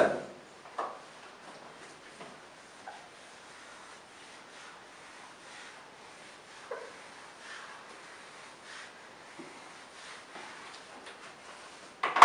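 A board eraser rubs softly across a whiteboard.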